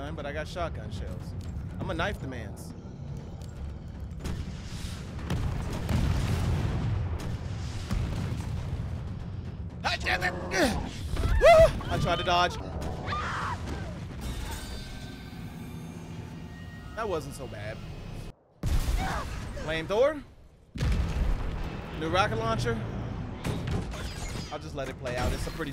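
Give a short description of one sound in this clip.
A young man talks and exclaims with animation into a close microphone.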